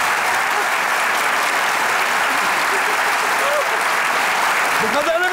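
A large audience applauds and cheers loudly in a big hall.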